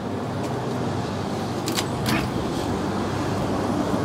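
A fuel nozzle clunks as it is pulled from a filler neck.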